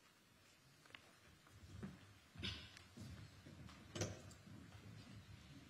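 Papers rustle in hands.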